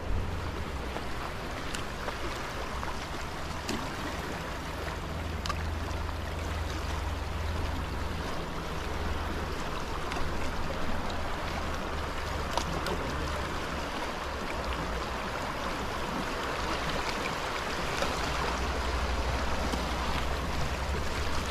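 Wind blows outdoors in gusts.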